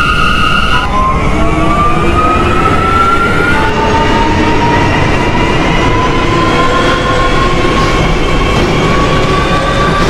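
A train's electric motors whine, rising in pitch as the train speeds up.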